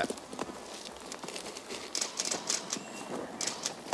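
Large lizards tear and chew at a carcass.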